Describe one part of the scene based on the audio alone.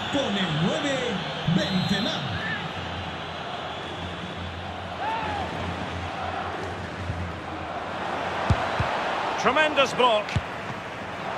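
A stadium crowd roars steadily throughout.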